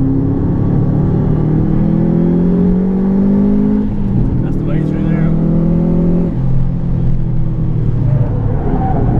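A car engine roars loudly from inside the car, rising in pitch and dropping with each gear change.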